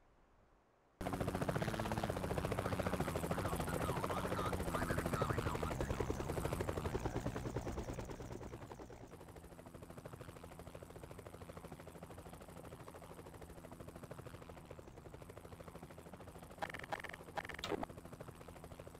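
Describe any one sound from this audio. An aircraft engine hums steadily nearby.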